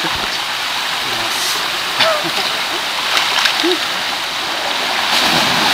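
Water rushes and splashes steadily down a rocky gorge.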